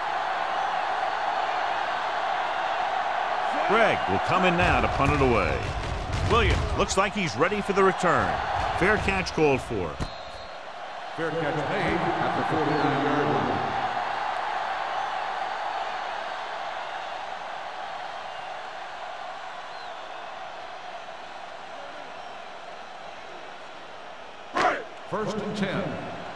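A large stadium crowd roars steadily, then slowly quiets.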